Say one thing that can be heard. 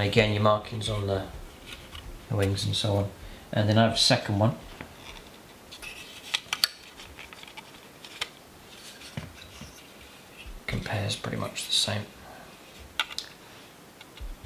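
A hard plastic model clicks and taps as it is handled and set down.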